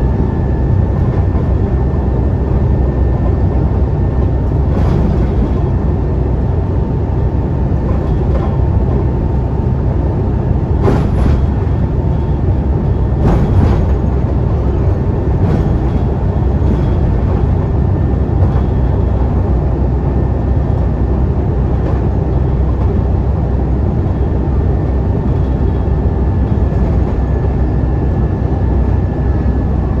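A bus engine drones steadily while driving along.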